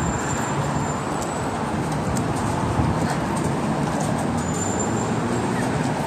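A car drives slowly past at a crossing.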